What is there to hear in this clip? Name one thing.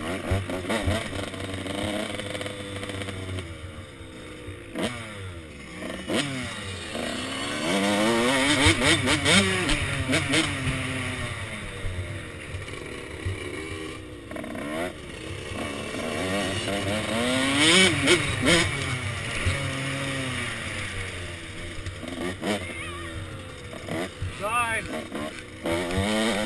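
A dirt bike engine revs up and down close by, throttling hard.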